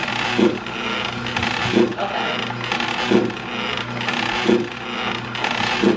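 A fan thumps softly in a steady rhythm.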